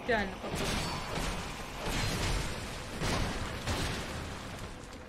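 A sword clangs against armour in heavy blows.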